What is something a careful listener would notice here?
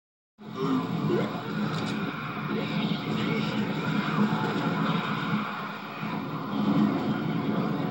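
Gunfire rattles from a video game through a television speaker.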